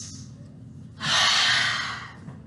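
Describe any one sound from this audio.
A young woman exclaims loudly, close by.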